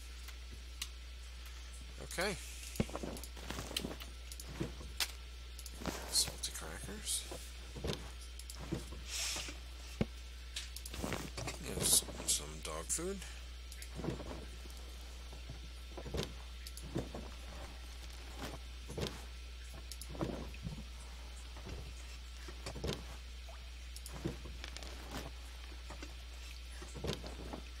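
Wooden cabinet doors knock and creak as they open.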